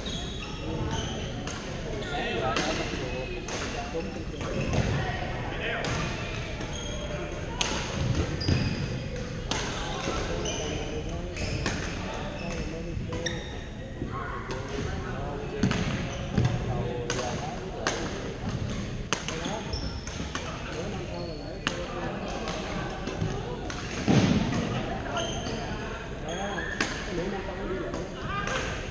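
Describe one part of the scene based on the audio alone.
Shuttlecocks are struck with sharp pops of rackets, echoing in a large hall.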